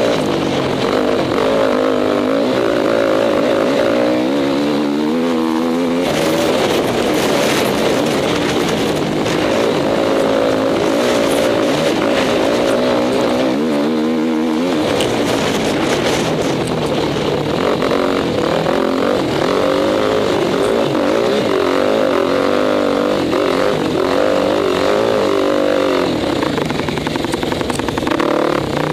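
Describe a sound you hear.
Dirt and gravel crunch and spatter under tyres.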